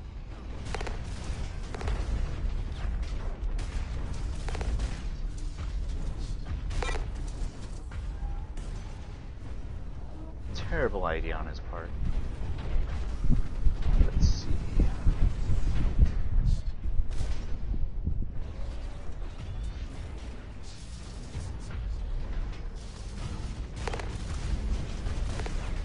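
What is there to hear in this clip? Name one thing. Heavy machine guns fire in rapid bursts.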